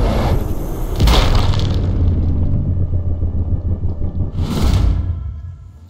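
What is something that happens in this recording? Loud gunshots ring out with a booming echo.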